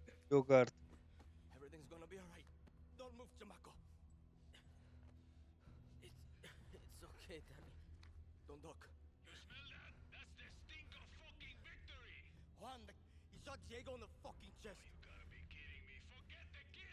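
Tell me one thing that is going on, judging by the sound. A man speaks quietly and softly in the background.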